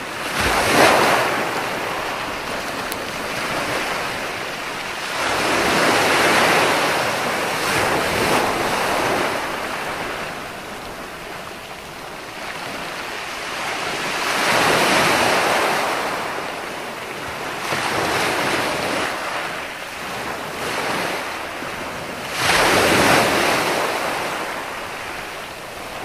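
Waves break and wash up onto a beach in slow, surging rushes.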